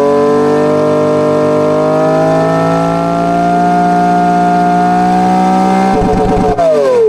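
A simulated engine roars at high revs, its pitch slowly rising.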